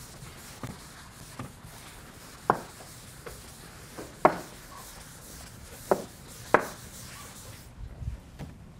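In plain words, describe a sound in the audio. A felt eraser rubs and bumps against a chalkboard.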